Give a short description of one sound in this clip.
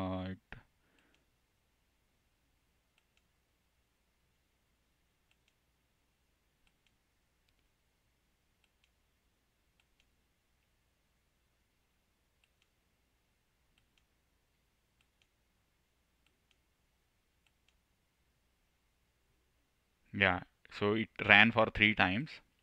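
A young man speaks calmly close to a computer microphone.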